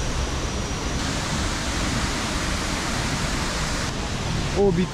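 A waterfall splashes and rushes steadily.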